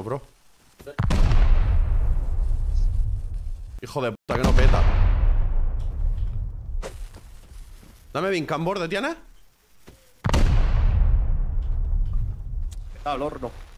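Loud gunshots boom and echo away.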